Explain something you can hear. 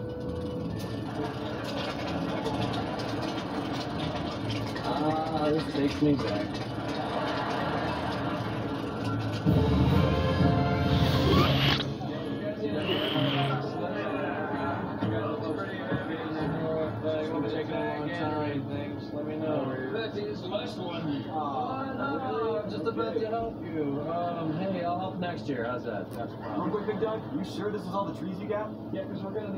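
A cartoon soundtrack plays through a small phone speaker.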